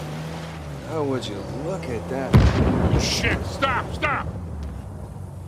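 A man shouts in alarm.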